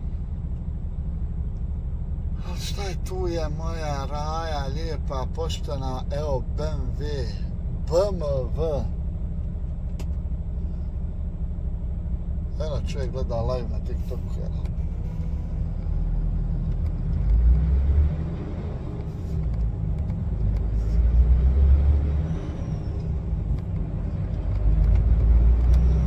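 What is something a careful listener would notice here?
A truck's diesel engine rumbles steadily and grows louder as the truck pulls away.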